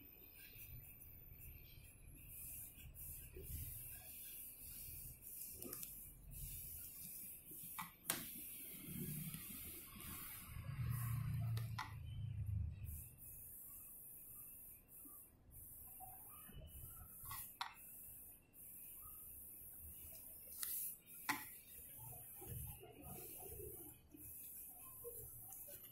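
A felt-tip marker squeaks and scratches softly on paper.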